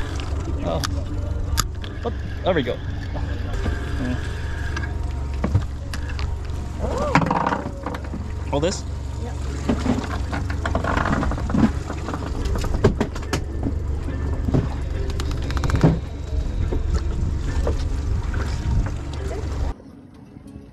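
A boat engine rumbles steadily outdoors.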